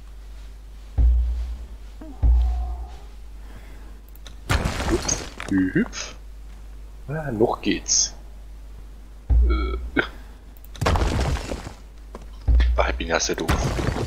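Heavy stone blocks thud down into place.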